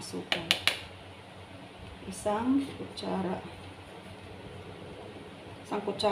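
A metal spoon scrapes and taps inside a plastic container.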